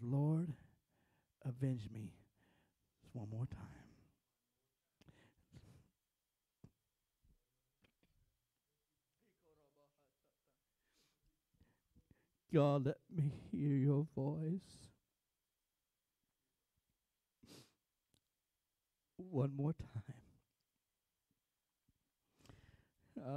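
A man preaches with animation into a microphone, in bursts with pauses, in a large echoing room.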